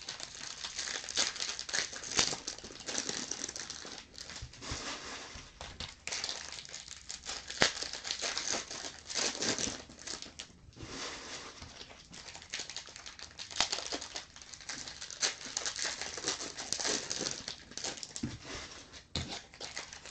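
Foil card wrappers crinkle and rustle close by as hands tear them open.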